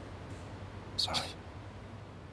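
A woman says a short word.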